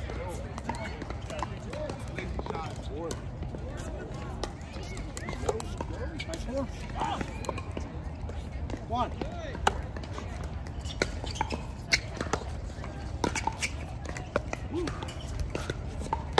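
Paddles strike a plastic ball with sharp hollow pops, back and forth.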